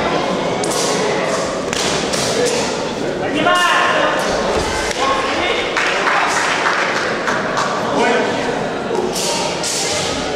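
Gloved punches and kicks thud against bodies.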